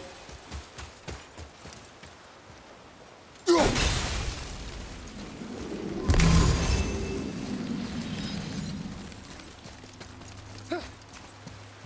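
Heavy footsteps crunch through grass.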